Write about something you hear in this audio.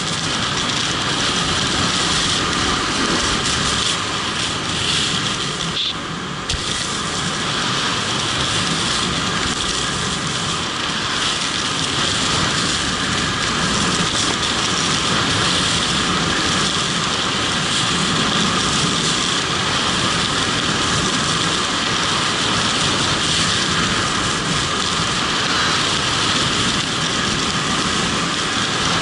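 Skis hiss and scrape over packed snow.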